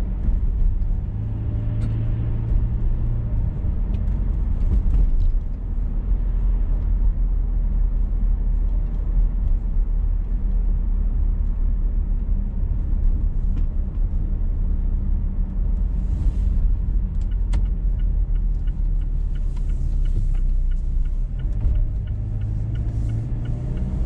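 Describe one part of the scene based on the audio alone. Tyres roll over a wet road with a steady rushing.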